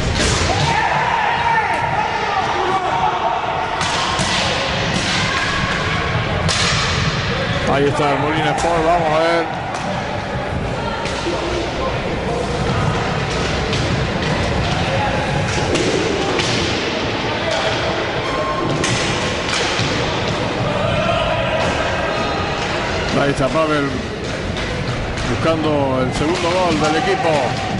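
Skate wheels roll and rumble on a wooden floor.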